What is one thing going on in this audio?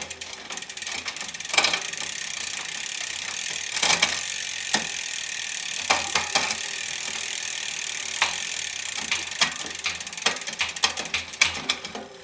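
A spinning bicycle wheel whirs steadily.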